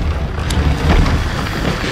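Flames crackle nearby.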